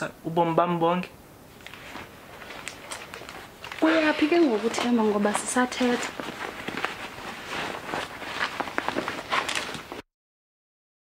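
Clothing rustles and brushes close against the microphone.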